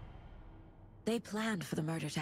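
A woman speaks quietly and calmly, close by.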